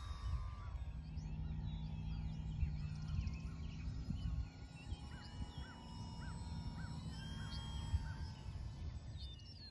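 A model airplane buzzes faintly overhead.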